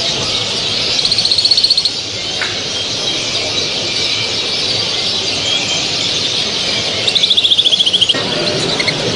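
A canary sings a fast, buzzing trill nearby.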